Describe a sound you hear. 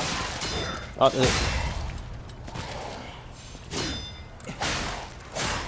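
A sword strikes with sharp metallic impacts.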